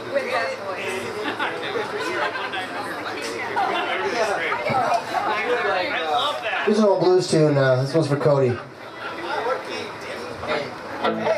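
A man talks into a microphone through loudspeakers.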